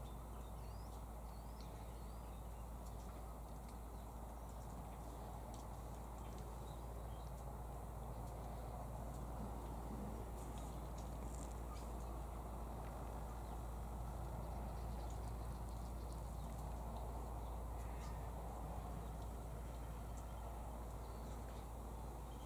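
A king parrot crunches berries in a tree.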